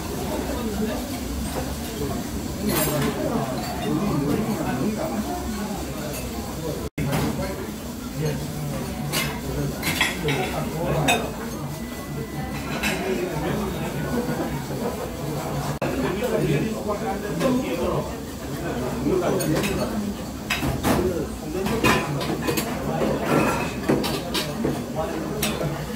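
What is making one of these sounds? Chopsticks clink and scrape against a metal bowl.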